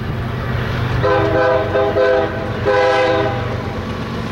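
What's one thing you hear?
A train horn blows loudly in long blasts.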